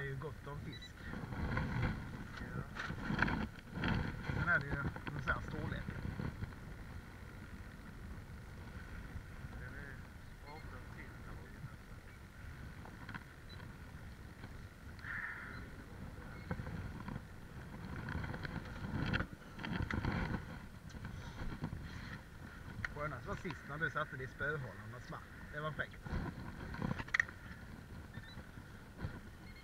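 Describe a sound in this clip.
A fishing reel clicks and whirs as line is wound in.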